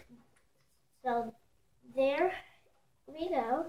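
A young boy talks with animation, close by.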